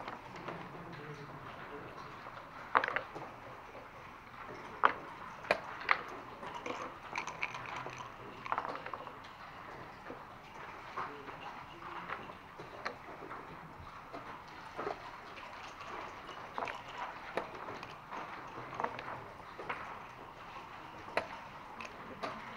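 Backgammon checkers click against a wooden board.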